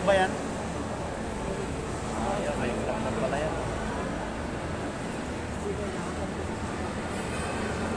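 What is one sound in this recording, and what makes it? A crowd chatters in a large echoing hall.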